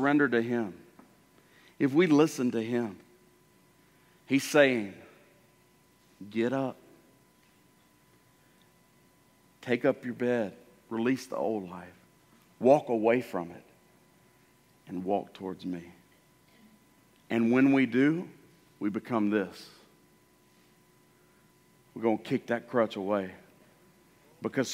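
A middle-aged man speaks with animation through a microphone in a large hall, pausing often.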